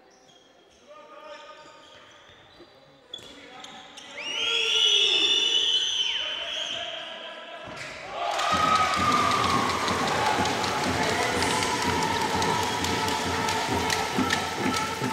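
Sneakers squeak on a hall floor.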